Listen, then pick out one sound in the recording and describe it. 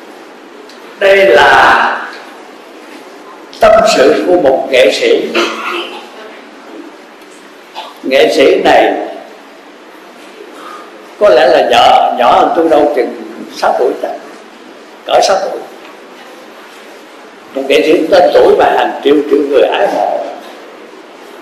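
An elderly man speaks calmly in short phrases, close to a microphone.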